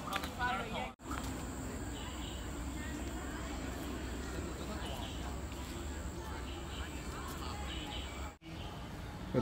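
Footsteps patter on a paved path.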